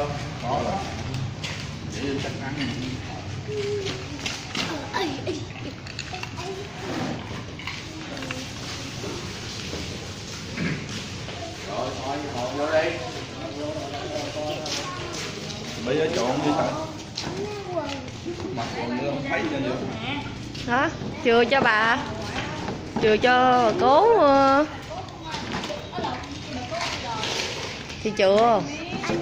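Several people chatter close by.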